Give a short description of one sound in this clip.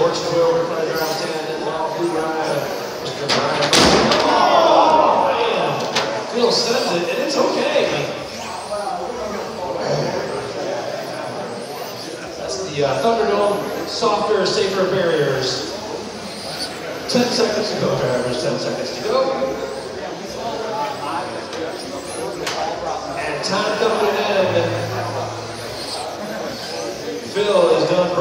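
Small electric model cars whine as they race past in an echoing hall.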